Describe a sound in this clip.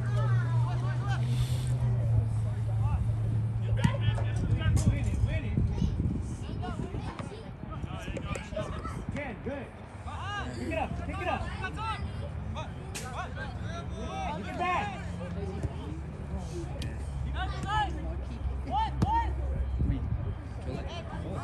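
Young players shout and call to each other across an open field outdoors.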